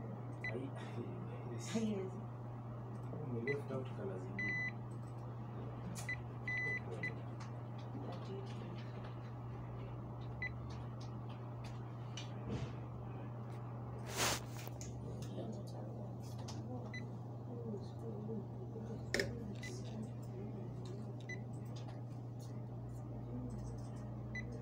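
A handheld electronic device gives short high beeps.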